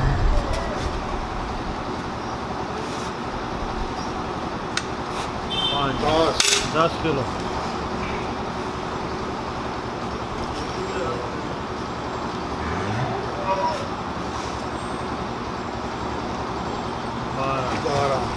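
Milk splashes into a metal cup.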